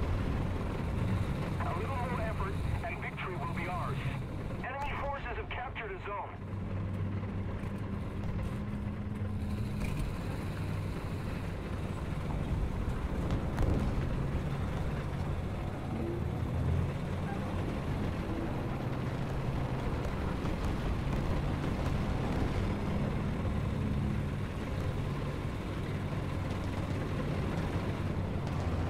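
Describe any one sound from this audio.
A tank engine rumbles steadily and revs as the tank moves.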